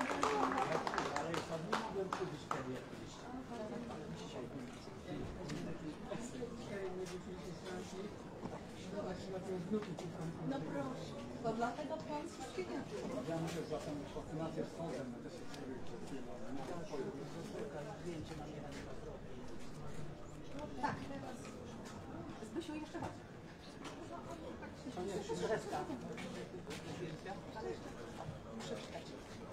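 Several men and women chat and greet one another outdoors.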